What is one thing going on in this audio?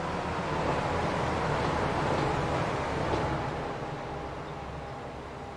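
A passenger train rumbles past close by and fades away.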